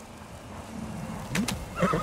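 Footsteps hurry across packed dirt.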